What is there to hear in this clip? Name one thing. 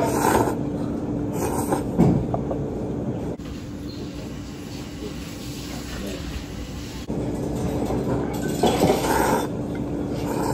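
A man slurps noodles loudly and close by.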